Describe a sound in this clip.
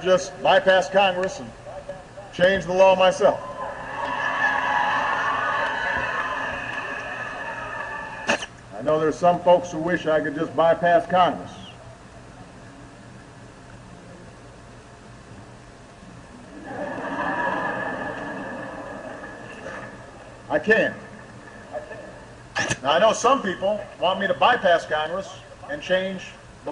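A man speaks into a microphone to an audience.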